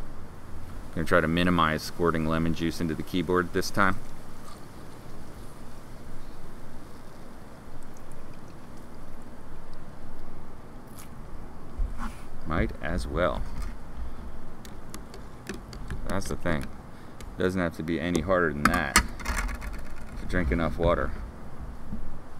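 A middle-aged man talks calmly and close by, in pauses.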